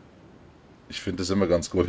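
A man speaks into a close microphone with animation.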